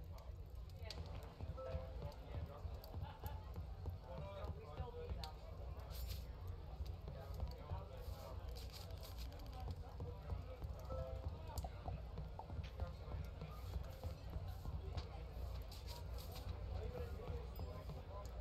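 A fire crackles in a hearth.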